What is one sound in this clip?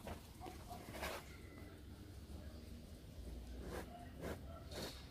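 A tiger sniffs and snuffles loudly close by.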